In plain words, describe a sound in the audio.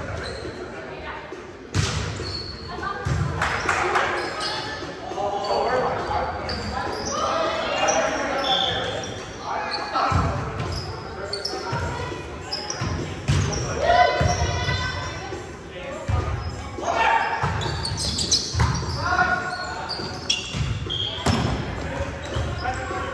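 Young people call out and chatter with animation across the hall.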